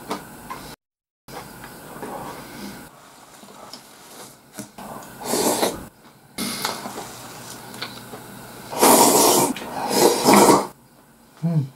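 A man slurps noodles loudly, close by.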